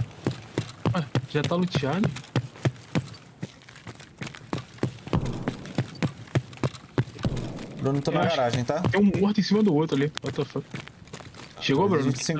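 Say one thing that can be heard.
Quick footsteps tap on a hard floor.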